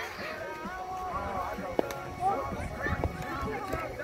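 A softball smacks into a catcher's glove.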